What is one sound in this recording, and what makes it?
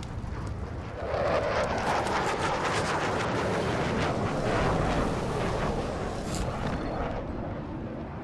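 Air rushes loudly past during a fast swing through the air.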